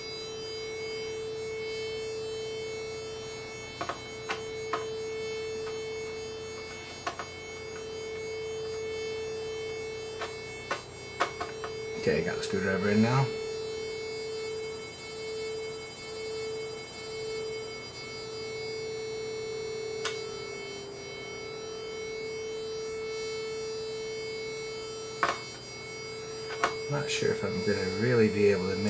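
A steady, buzzy electronic tone hums without a break.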